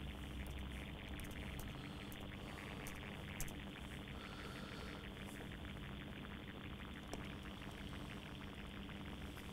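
A man speaks steadily and calmly into a close microphone.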